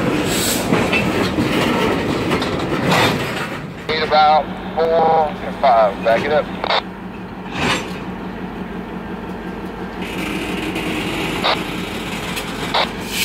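A diesel locomotive rumbles at a distance.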